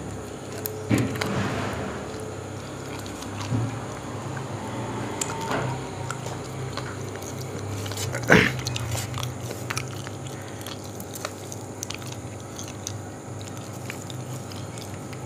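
A man chews food noisily with his mouth close by.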